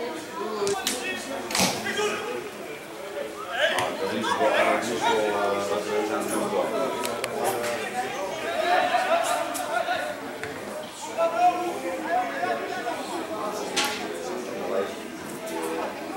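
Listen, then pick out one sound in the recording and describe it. Football players shout to each other across an open field.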